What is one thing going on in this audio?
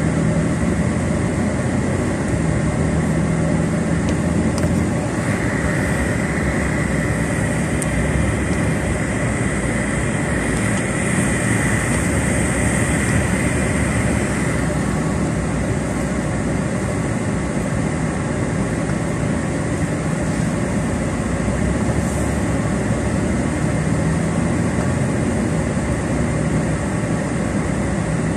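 A car engine hums steadily from inside the car as it drives slowly.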